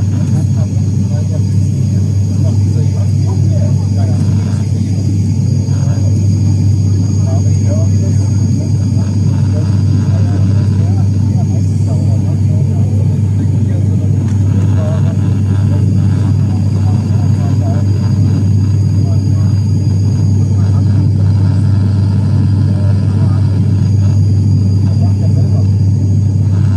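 A propeller engine drones loudly and steadily up close, heard from inside a cabin.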